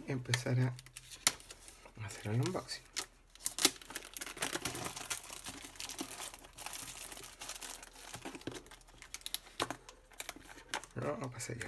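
A knife slices through plastic wrap.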